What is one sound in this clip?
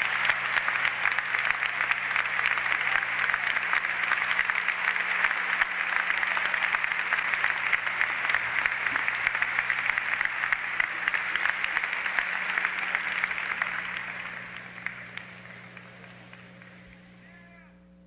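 A large crowd applauds loudly in a big hall, then the clapping fades away.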